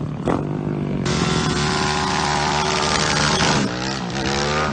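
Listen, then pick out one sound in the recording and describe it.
A motorcycle's rear tyre screeches as it spins on the road.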